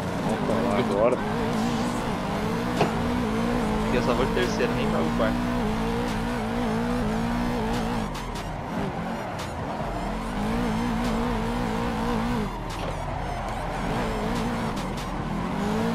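Tyres squeal as the car slides sideways.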